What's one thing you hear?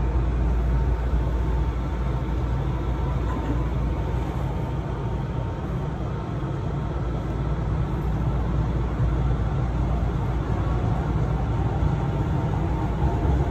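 A subway train rumbles steadily as it moves.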